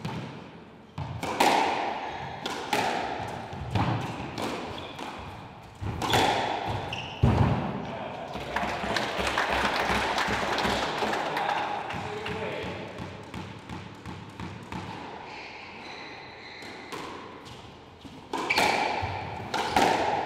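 A squash ball smacks sharply off the walls of an echoing court.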